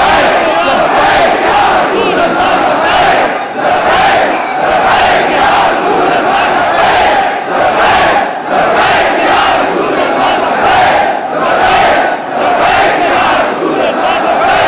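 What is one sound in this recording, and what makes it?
A man leads the chant, shouting.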